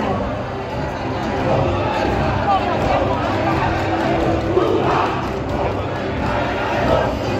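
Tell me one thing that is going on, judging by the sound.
A large crowd cheers and chatters loudly in a big hall.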